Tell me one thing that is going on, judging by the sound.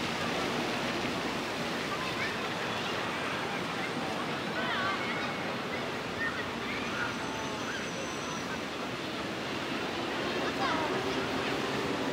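Men and women chatter nearby, outdoors.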